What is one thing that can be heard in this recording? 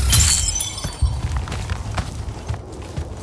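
Rocks crumble and scatter with a rumbling crash.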